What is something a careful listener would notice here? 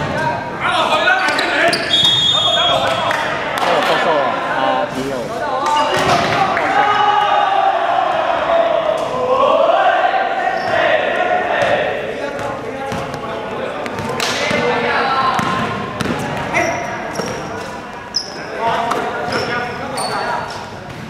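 A basketball bounces on a hard floor with echoing thuds.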